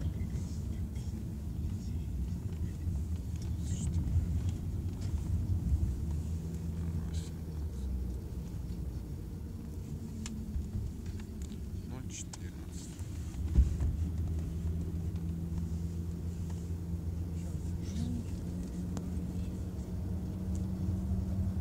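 Tyres rumble low and steady on the road.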